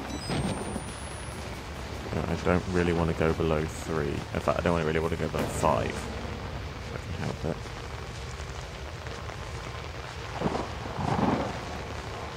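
Dry grass and branches rustle as someone pushes through them.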